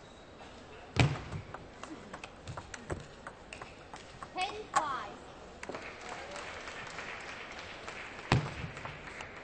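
A table tennis ball clicks sharply back and forth off paddles and the table.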